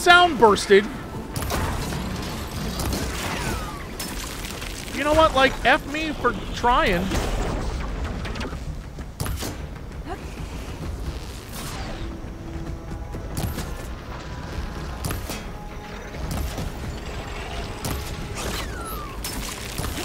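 A bowstring twangs as arrows fly.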